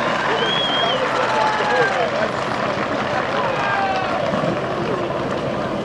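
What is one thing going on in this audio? A large crowd murmurs and cheers in the open air.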